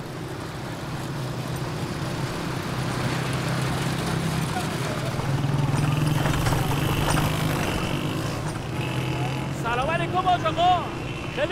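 A motorcycle engine hums steadily nearby.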